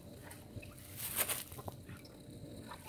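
Water splashes in a bucket.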